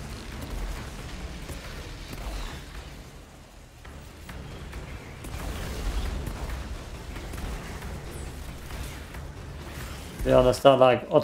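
Explosions boom with a low rumble.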